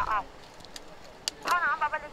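A plastic water bottle crinkles in a hand.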